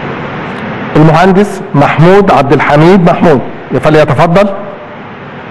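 An elderly man speaks firmly into a microphone in a large echoing hall.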